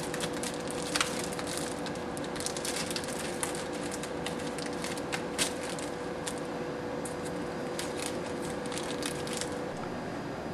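Paper and a plastic packet crinkle and rustle as hands handle them.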